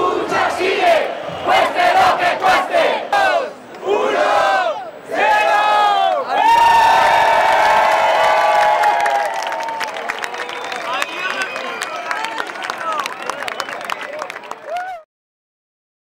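A crowd chants and cheers together outdoors.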